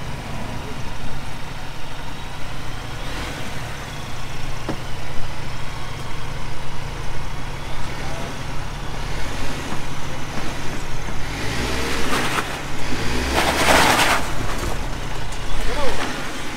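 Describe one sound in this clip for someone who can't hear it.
Tyres grind and scrape over rock and wet mud.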